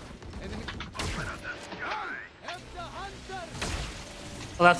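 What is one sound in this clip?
A sniper rifle fires a sharp shot.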